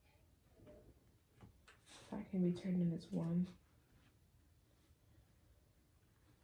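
Fabric rustles softly under hands.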